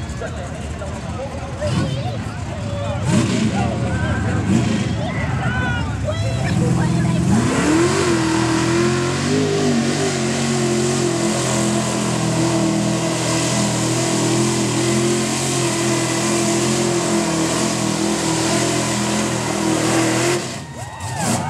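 A truck engine revs and roars loudly.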